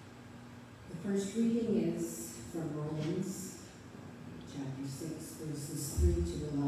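An elderly woman speaks calmly through a microphone in an echoing hall.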